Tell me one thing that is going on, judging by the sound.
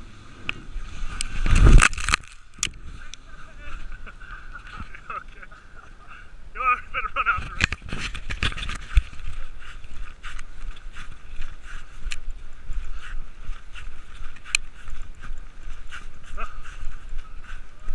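A sled hisses and scrapes over packed snow.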